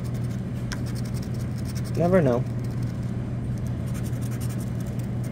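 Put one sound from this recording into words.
A coin scratches rapidly across a card, close up.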